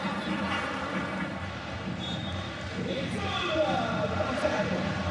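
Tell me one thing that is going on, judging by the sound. A crowd roars in a large echoing arena.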